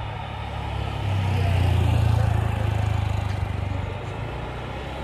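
A motor scooter engine hums as it drives past close by.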